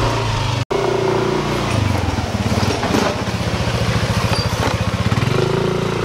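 A motor scooter engine hums close by and passes.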